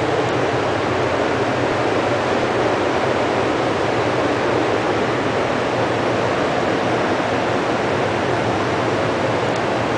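Electrical equipment hums with a steady, loud rushing noise.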